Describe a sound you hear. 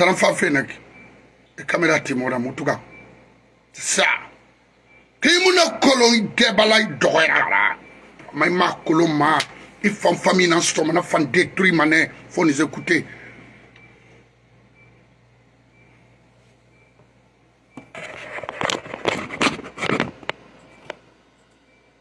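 A middle-aged man speaks with animation close to a phone microphone.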